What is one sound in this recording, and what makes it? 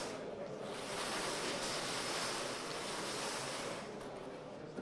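Plastic balls rattle as a lottery drum is turned.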